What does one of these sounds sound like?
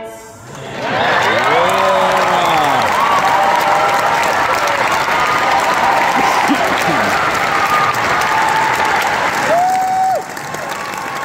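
Audience members cheer and whoop.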